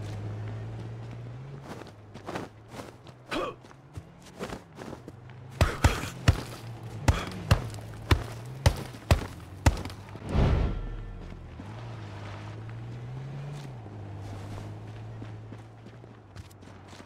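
Footsteps run over dirt and grass.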